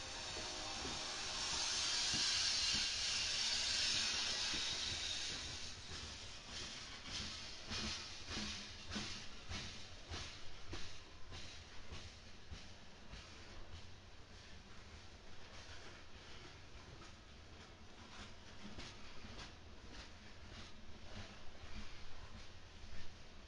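Freight cars rumble steadily past on the rails.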